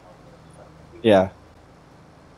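A man shouts briefly into a close microphone.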